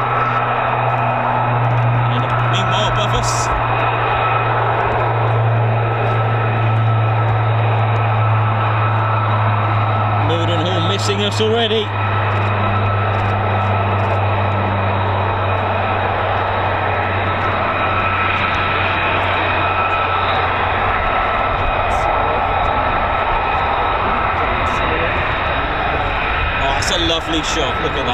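A jet engine rumbles in the distance.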